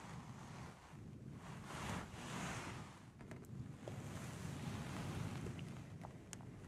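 A brush rustles against fabric with soft scratching strokes.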